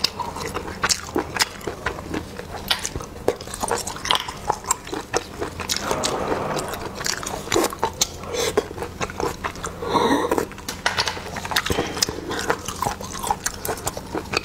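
A young woman slurps and sucks snails up close.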